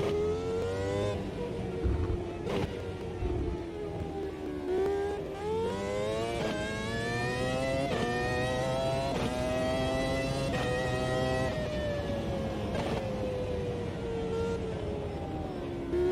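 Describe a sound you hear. A racing car engine screams at high revs, rising and dropping in pitch as the gears change.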